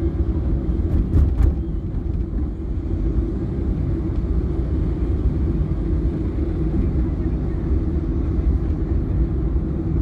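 Motorbike engines buzz close by.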